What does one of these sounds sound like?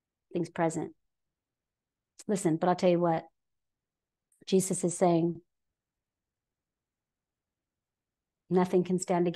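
A woman speaks calmly into a close microphone, in short phrases with pauses.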